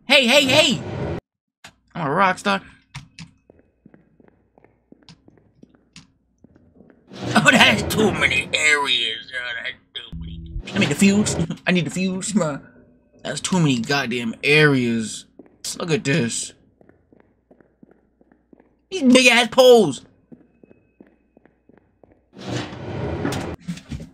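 A young man talks with animation into a close microphone, in bursts with pauses.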